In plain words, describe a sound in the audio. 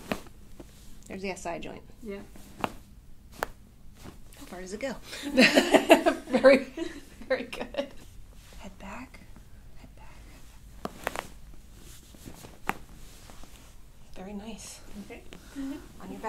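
A woman speaks quietly close by.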